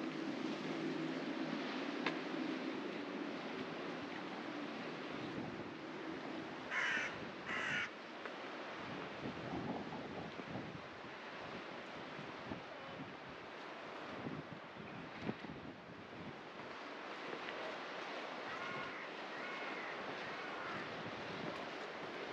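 Footsteps scuff on a paved lane.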